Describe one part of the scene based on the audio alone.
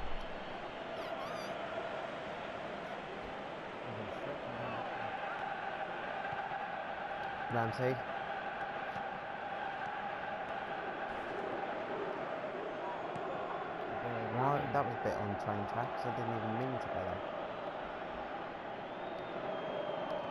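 A stadium crowd murmurs and chants steadily throughout.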